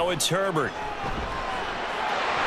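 A stadium crowd roars and swells.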